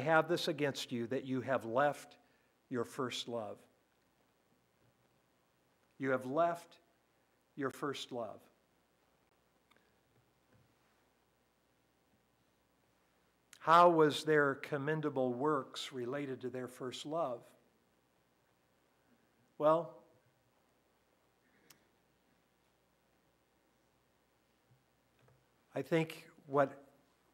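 An elderly man speaks calmly through a microphone, pausing often.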